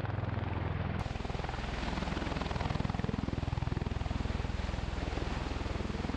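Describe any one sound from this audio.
Rotor downwash blasts dust across the ground with a rushing roar.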